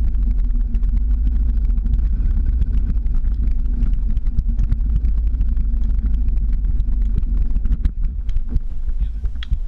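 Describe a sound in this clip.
Skateboard wheels roll and rattle steadily over rough pavement.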